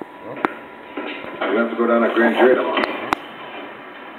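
A man speaks calmly, heard through a television loudspeaker.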